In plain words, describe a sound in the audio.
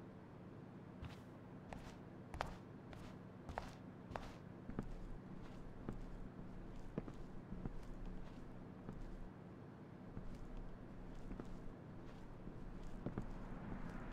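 Footsteps tap steadily across a wooden floor.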